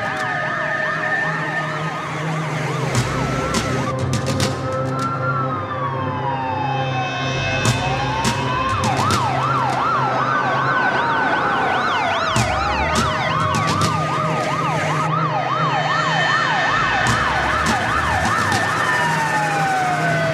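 Heavy fire engines rumble past with roaring diesel engines.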